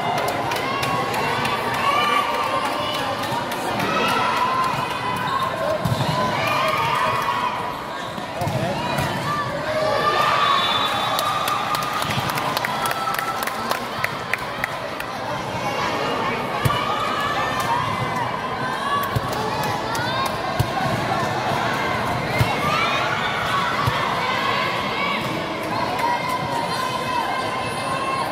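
A crowd of spectators cheers and chatters loudly in a large echoing hall.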